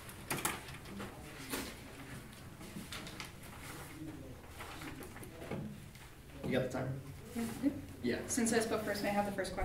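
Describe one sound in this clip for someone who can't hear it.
Papers rustle as they are handled.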